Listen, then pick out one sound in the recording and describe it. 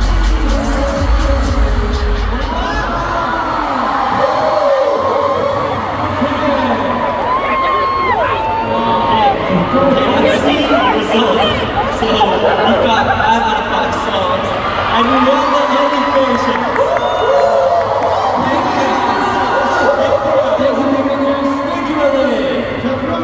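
A huge crowd cheers and screams loudly throughout, echoing in a large arena.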